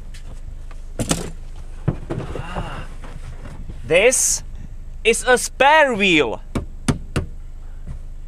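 Objects knock and rustle in a car boot.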